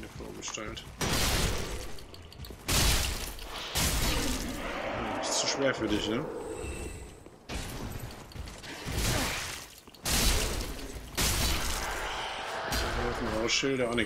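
Swords clash and strike armour in loud blows.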